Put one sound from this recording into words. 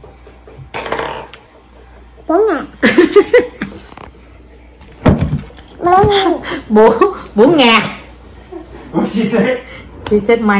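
A young woman speaks and laughs close by.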